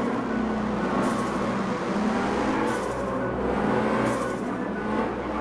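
Tyres screech in short bursts.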